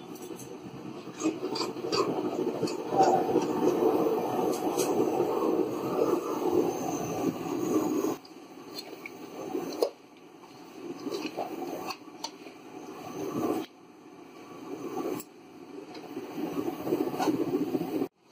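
A metal ladle scrapes and knocks against a pan.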